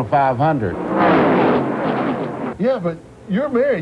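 Race cars roar past at speed.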